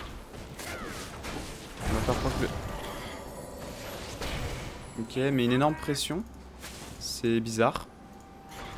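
Game combat effects whoosh and clash.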